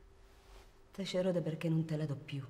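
A man speaks firmly and coldly close by.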